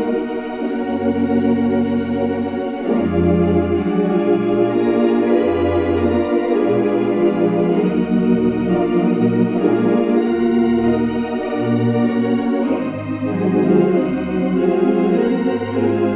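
An organ plays a slow, sustained melody with deep bass notes.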